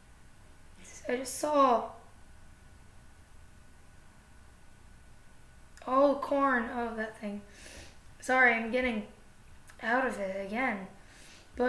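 A young woman speaks calmly and close to the microphone, in short bursts.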